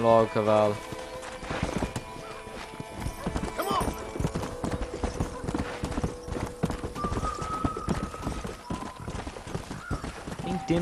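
A horse's hooves clop steadily on a dirt track.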